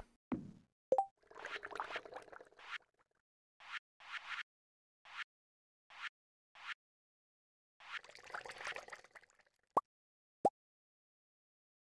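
Soft blips sound as a game menu is browsed.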